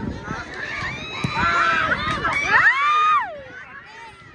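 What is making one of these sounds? Young women scream loudly with excitement.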